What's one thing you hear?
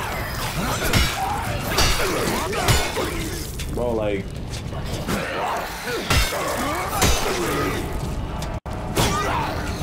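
Heavy blows land with sharp thuds.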